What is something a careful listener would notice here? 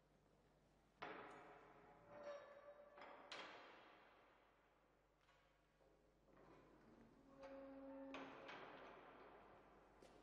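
Keys rattle in a metal gate's lock.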